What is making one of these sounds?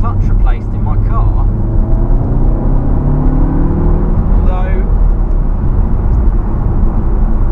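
A car engine hums steadily from inside the car and rises in pitch as it speeds up.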